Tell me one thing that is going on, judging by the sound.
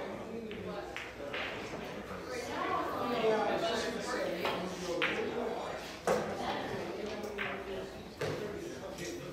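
Pool balls clack against each other.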